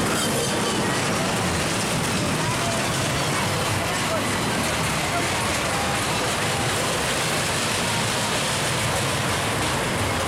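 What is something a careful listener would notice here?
A roller coaster train rattles along its track.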